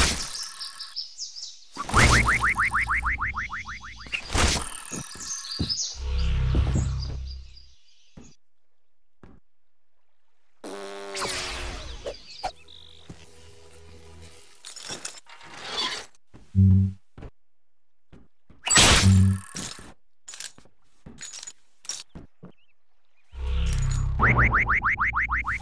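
Video game blows and crashes sound in short, loud bursts.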